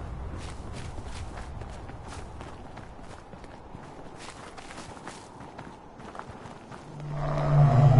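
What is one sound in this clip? Footsteps crunch on dry leaves and forest ground.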